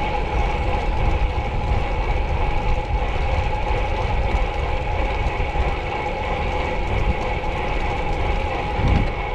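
Wind rushes loudly past a fast-moving cyclist.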